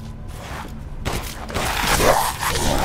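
A beast snarls and roars up close.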